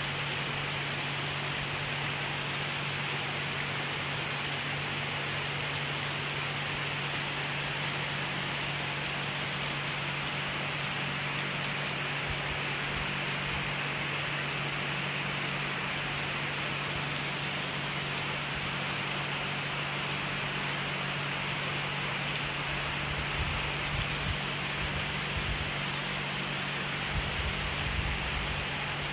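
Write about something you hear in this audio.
Heavy rain pours down steadily outdoors, splashing on flooded pavement.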